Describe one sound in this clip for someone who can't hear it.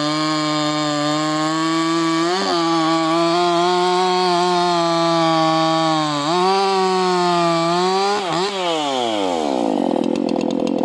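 A chainsaw engine roars steadily while cutting through a log, then winds down at the end.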